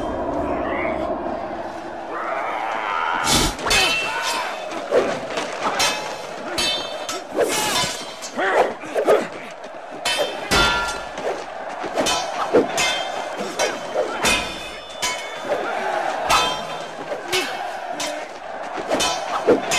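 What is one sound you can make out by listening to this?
A crowd roars loudly in a large arena.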